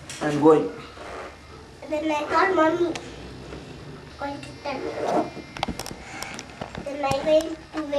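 A small child talks in a high voice close by.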